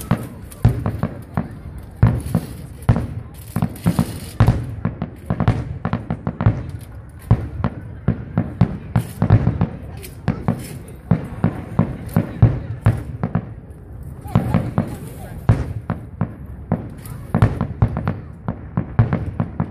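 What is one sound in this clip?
Fireworks bang and crackle repeatedly in the distance, outdoors.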